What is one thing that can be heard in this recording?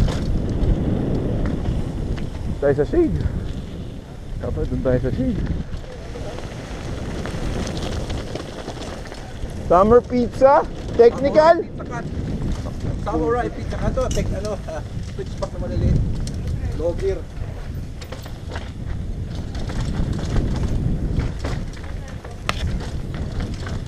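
Bike tyres crunch and rattle over gravel and dirt.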